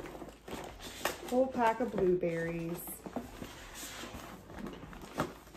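A zipper is pulled open on a bag.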